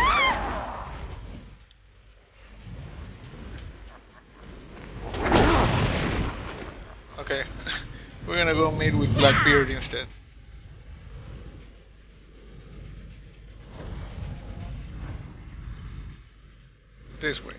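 Large wings whoosh and flap.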